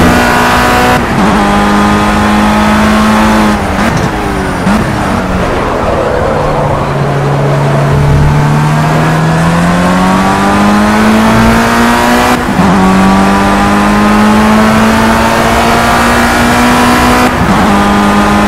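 A racing car engine changes gear with sudden jumps in pitch.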